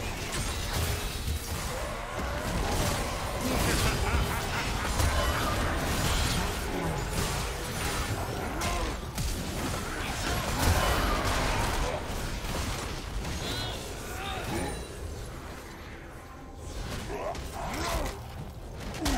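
Spell effects burst and clash in a fast game fight.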